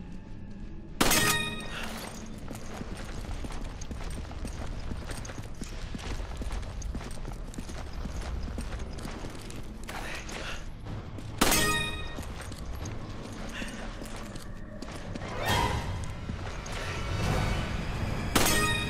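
A gun fires loudly, and each shot rings out in an echoing space.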